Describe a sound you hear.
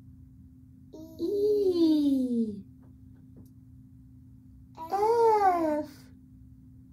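A woman sings two long notes that slide downward, close by.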